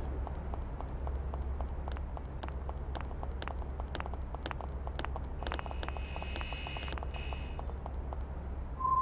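Footsteps patter quickly on a hard floor.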